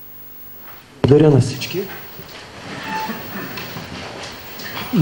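A crowd of men and women murmur and chatter nearby.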